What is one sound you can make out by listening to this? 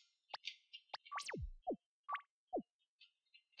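Short electronic menu blips and falling beeps sound.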